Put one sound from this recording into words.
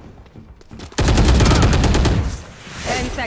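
A rifle fires in a rapid burst of shots.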